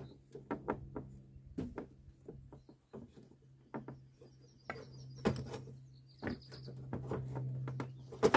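A wooden bar creaks and knocks against a car's bumper as it is levered.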